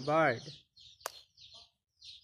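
A plastic toy lands with a soft thud on an inflatable pool floor.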